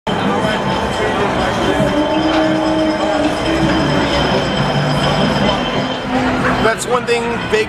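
A man sings through a microphone and loudspeaker.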